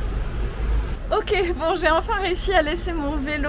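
A young woman talks cheerfully close to a microphone.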